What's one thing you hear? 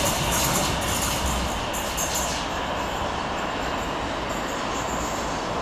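A metro train rumbles away on its rails.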